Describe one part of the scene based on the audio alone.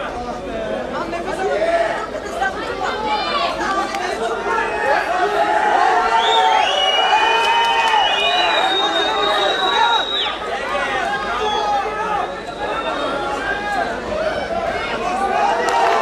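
A crowd shouts and cheers loudly.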